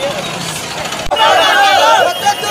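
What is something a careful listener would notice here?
A man shouts slogans up close.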